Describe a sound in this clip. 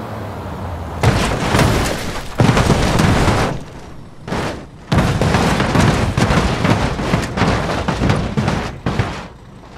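A truck smashes into an obstacle with heavy crashing and banging.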